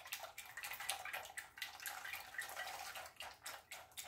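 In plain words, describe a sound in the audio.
Chopped nuts pour into a bowl of batter.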